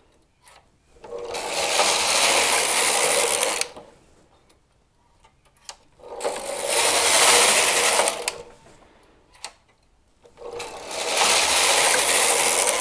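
A knitting machine carriage slides across the needle bed with a loud rushing clatter.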